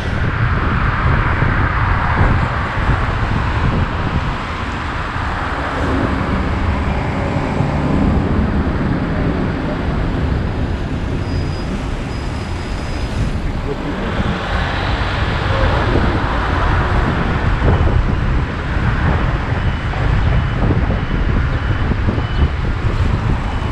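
Traffic hums and rolls along a busy road.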